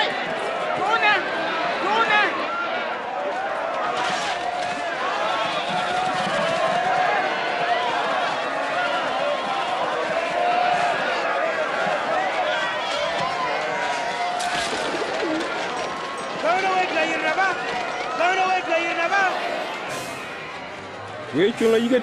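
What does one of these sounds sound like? A crowd of men and women shouts and clamours outdoors.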